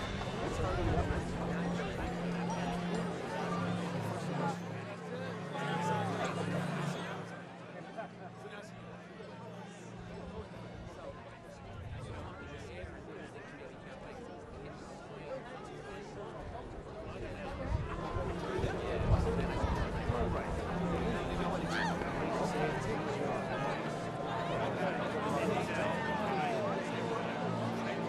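A large crowd murmurs in the stands.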